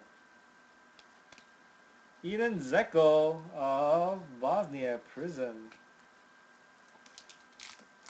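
Trading cards rustle and tap softly as hands sort them.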